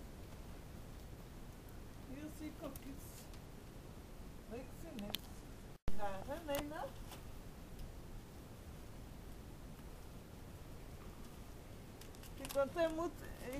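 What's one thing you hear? Nylon fabric rustles and flaps.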